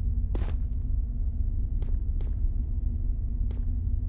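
Large fans hum with a steady low drone.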